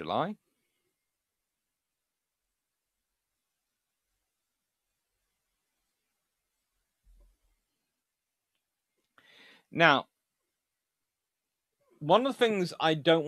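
A young man speaks calmly into a nearby microphone, with long pauses.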